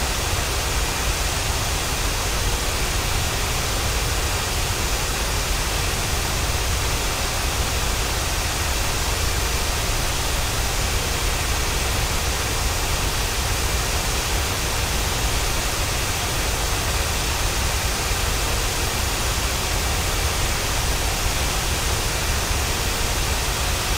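A twin-engine jet airliner's engines roar steadily in cruise.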